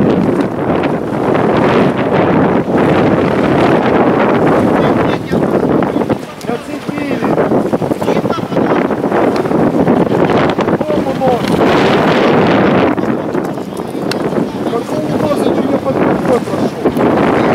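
Choppy water laps and splashes.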